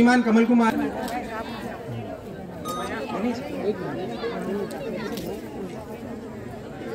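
A crowd of men and women chatters around.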